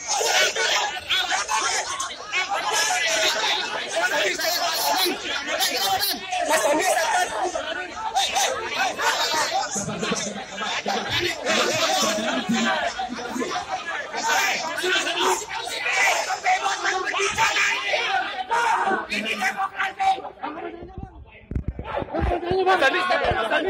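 A dense crowd of men shouts and jostles noisily up close.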